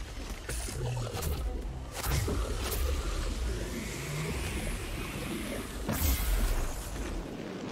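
Weapons strike with sharp, crackling hits.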